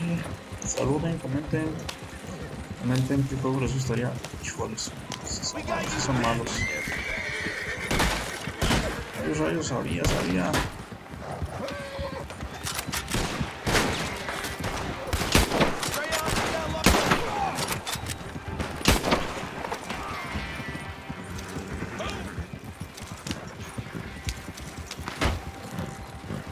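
Wooden cart wheels rumble over a dirt track.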